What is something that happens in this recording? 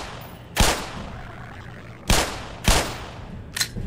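Pistol shots ring out sharply, one after another.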